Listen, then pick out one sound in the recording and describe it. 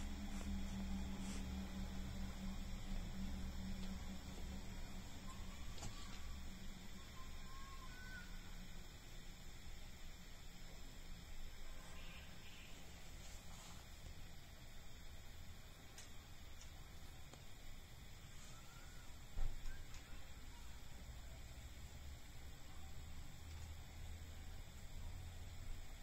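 A metal crochet hook softly scrapes and clicks against yarn.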